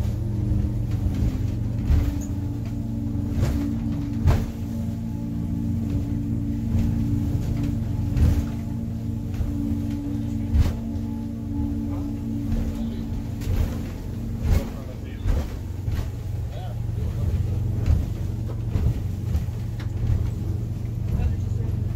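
A boat's engine drones steadily.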